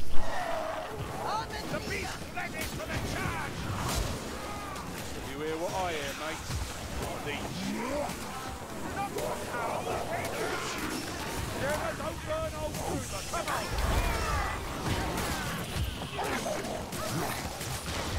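Blades hack and slash into monsters again and again.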